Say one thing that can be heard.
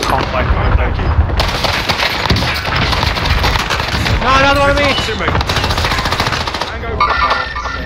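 Gunfire rattles close by in rapid bursts.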